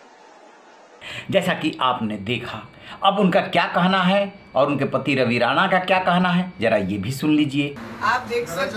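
A middle-aged man speaks forcefully and close up.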